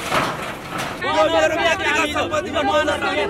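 A crowd of men shouts and chants outdoors.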